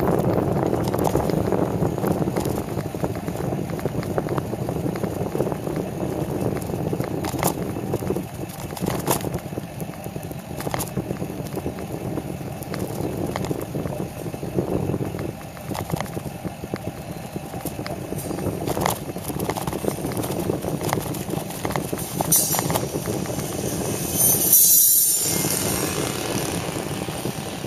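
Wind rushes loudly across a microphone.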